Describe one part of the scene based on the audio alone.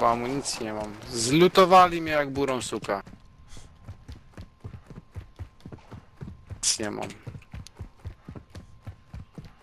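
Footsteps thud quickly up hard stairs.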